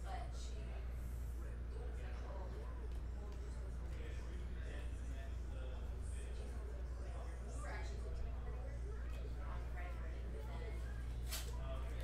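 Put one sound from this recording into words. Trading cards rustle and slide in a hand.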